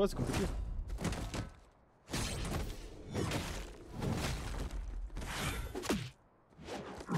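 A man talks with animation into a microphone, close by.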